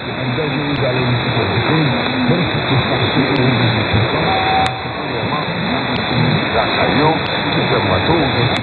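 A radio receiver hisses with static.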